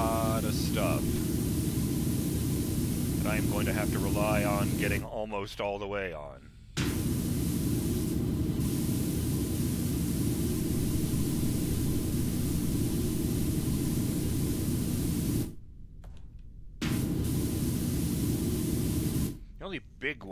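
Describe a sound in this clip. A pressure washer sprays with a steady, loud hiss, stopping and starting a few times.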